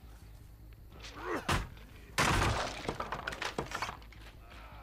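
Wooden planks smash and splinter with a loud crash.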